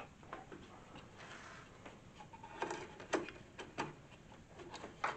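Sharp clicks and knocks come from a mitre saw being adjusted by hand.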